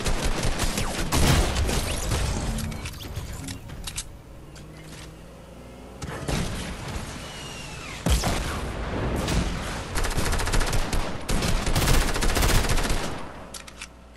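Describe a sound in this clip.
A rifle fires bursts of rapid shots.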